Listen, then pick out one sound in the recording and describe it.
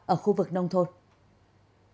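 A young woman speaks calmly into a microphone.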